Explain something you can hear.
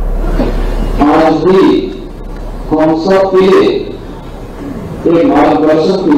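A man speaks forcefully into a microphone, heard through loudspeakers in a large hall.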